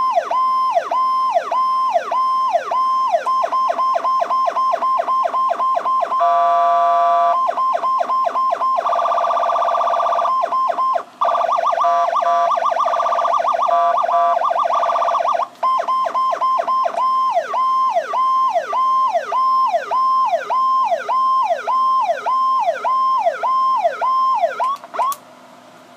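A siren wails loudly, switching between fast yelping, steady warbling and rapid pulsing tones.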